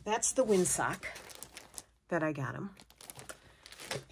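A plastic package crackles as it is handled.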